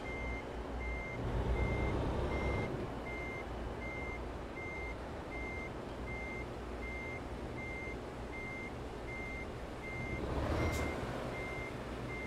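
A passing truck rushes by.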